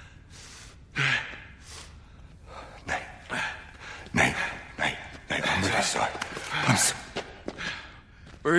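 A man speaks pleadingly, close by.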